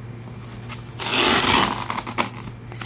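A knife slices through soft foam.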